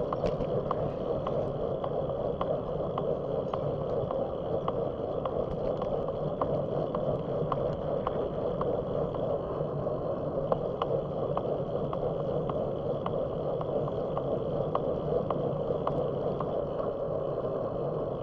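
Tyres roll steadily over a paved road with a constant rumble.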